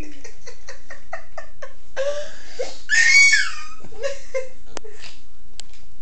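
A young boy laughs and giggles close by.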